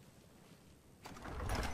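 An iron door creaks open.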